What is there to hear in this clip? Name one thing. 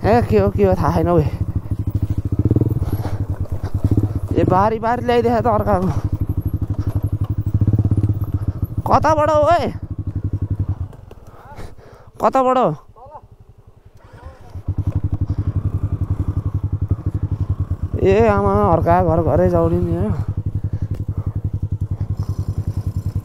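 A motorcycle engine putters steadily close by.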